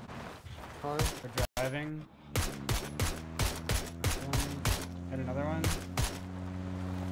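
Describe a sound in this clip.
Rifle shots crack in quick succession.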